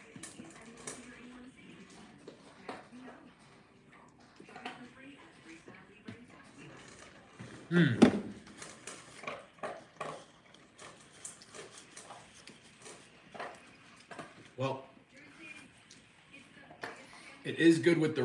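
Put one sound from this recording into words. A woman eats, chewing and crunching close by.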